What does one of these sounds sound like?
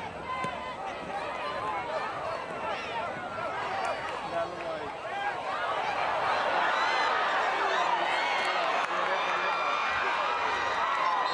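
A large crowd cheers and shouts outdoors, growing louder.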